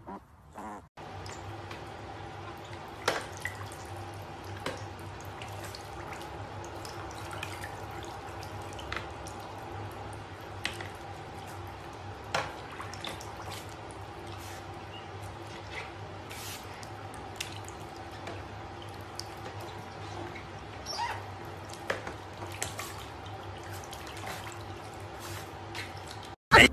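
Water splashes and drips as an animal swims in a tub.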